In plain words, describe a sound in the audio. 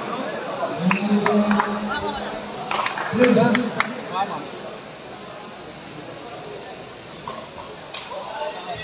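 A crowd chatters and shouts in an echoing hall.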